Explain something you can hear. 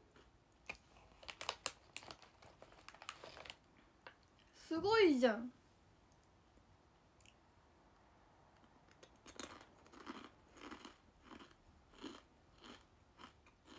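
A young woman chews crunchy food.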